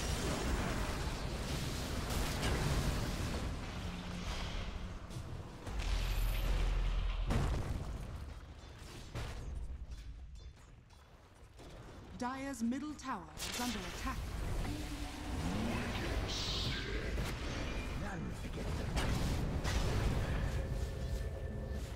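Game spells crackle and explode in a fight.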